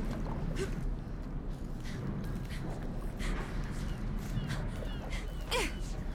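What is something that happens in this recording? Hands and feet clank on a metal ladder while climbing.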